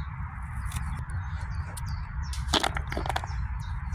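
Onion pieces drop into a plastic bowl.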